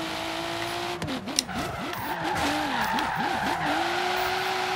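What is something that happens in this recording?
A car engine revs up and down rapidly as the gears shift.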